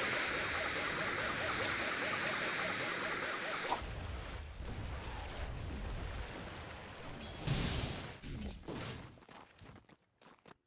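Battle sounds clash and thud in a video game.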